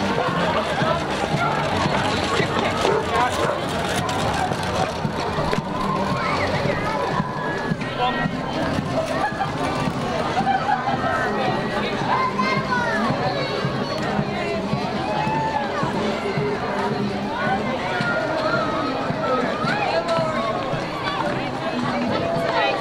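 A crowd of men, women and children chatters outdoors nearby.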